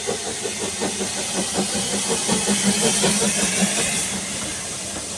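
Steam hisses loudly from a steam locomotive.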